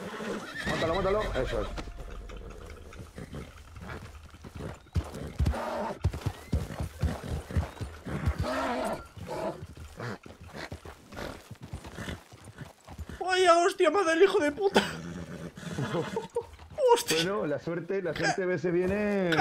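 A horse's hooves thud as it walks on grass and dirt.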